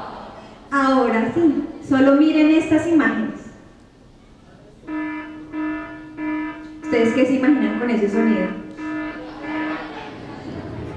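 A young woman speaks with animation through a microphone and loudspeakers in a large room.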